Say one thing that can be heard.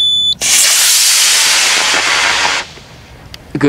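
A rocket motor roars loudly with a hissing rush.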